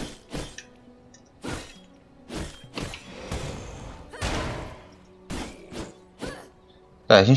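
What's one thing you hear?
A sword swooshes and clangs in quick strikes.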